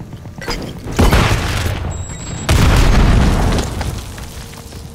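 An explosion booms up close.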